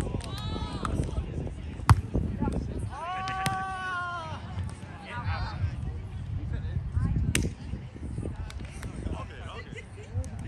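Young adults call out and shout outdoors.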